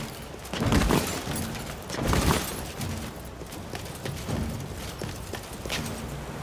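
Metal armour clinks and rattles with each stride.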